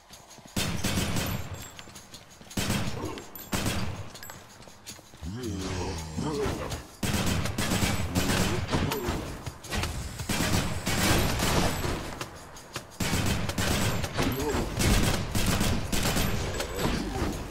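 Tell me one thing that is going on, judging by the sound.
Sword slashes and hits ring out in a fast fight.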